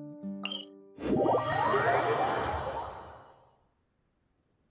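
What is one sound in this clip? A bright magical whoosh swells and slowly fades.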